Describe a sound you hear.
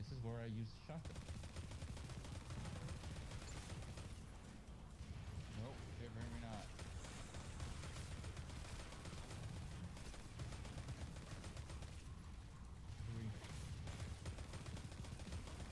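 Gunfire from a game rattles rapidly.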